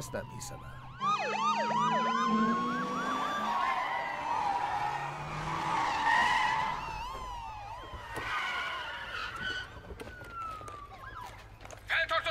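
Police sirens wail nearby, rising and falling.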